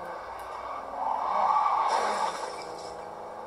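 Car tyres screech while skidding, heard through loudspeakers.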